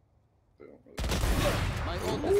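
A rifle fires a loud, sharp shot.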